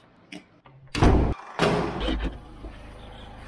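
A door handle rattles as a door opens.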